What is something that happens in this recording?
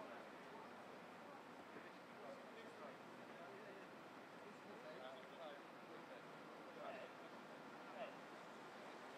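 Men talk faintly in the distance outdoors.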